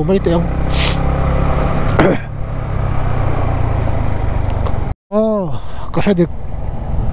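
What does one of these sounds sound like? A motorcycle engine hums steadily, rising and falling with the throttle.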